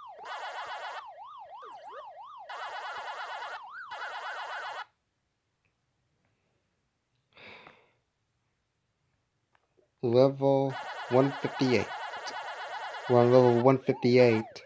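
Arcade game sound effects warble and chirp rapidly.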